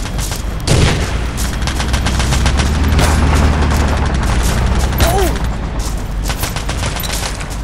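A tank engine rumbles close by.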